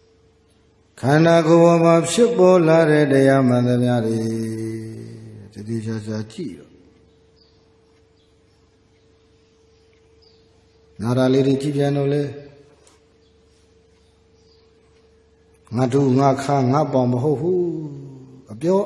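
A man chants in a drawn-out, sing-song voice through a microphone, in bursts with pauses.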